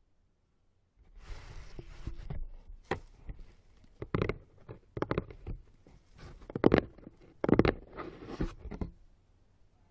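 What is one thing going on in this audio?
Hands handle and tap a cardboard box close by.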